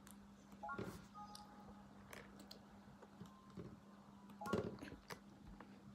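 A game menu chimes with short electronic tones.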